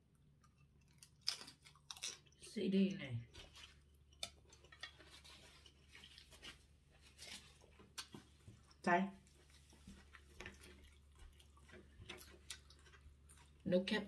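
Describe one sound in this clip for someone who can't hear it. A woman chews noodles, close to the microphone.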